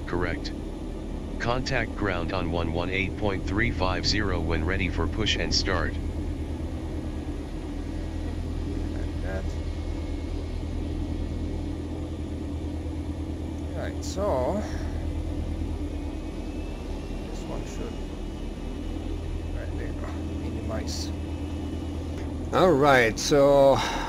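A small propeller engine idles with a steady low hum.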